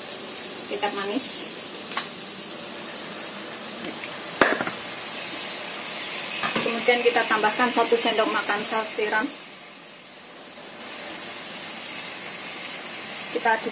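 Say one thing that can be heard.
Onions sizzle and crackle in hot oil.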